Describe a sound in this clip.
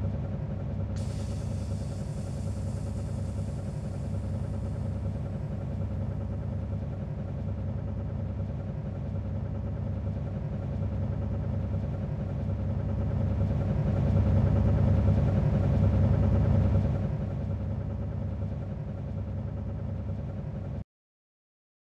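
A bus engine idles with a low, steady rumble that swells for a few seconds and then settles.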